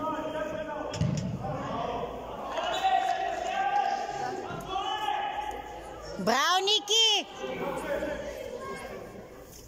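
Young players shout to each other across a large echoing hall.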